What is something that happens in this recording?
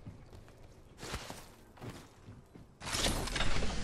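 Footsteps clank on metal stairs.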